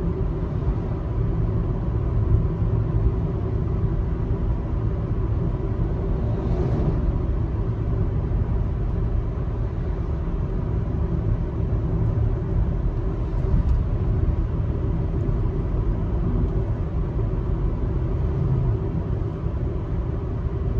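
A car engine hums steadily as tyres roll over the road.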